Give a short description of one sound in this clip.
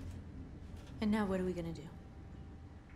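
A young woman speaks calmly and questioningly, close by.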